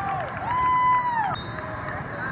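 A referee's whistle blows a long shrill blast in a large echoing hall.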